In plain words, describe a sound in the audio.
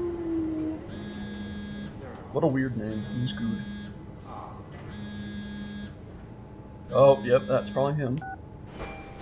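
A phone ringtone rings in repeated bursts.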